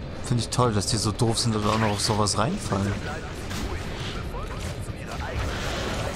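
Rushing whooshes sweep past during swinging.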